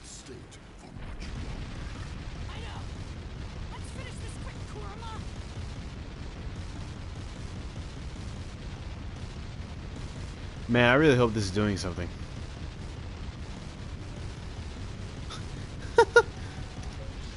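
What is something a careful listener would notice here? Explosions boom and rumble over and over.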